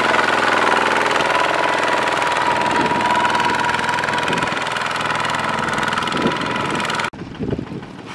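A small diesel engine chugs loudly and steadily close by.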